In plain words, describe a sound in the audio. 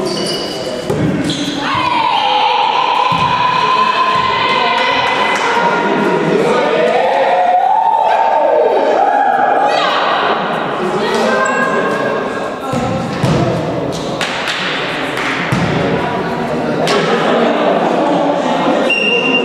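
Young men shout and cheer in a large echoing hall.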